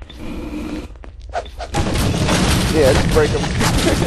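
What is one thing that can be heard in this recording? Wooden crates smash and splinter under blows.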